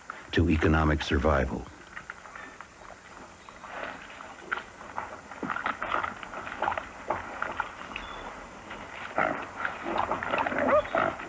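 Wild boars snuffle and root through crunching snow.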